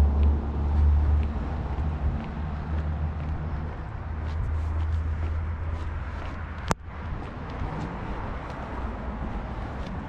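Footsteps fall steadily on a concrete sidewalk.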